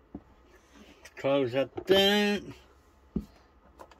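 A plastic lid snaps shut on a small cooking appliance.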